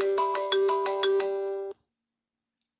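A phone ringtone plays a quick chiming melody.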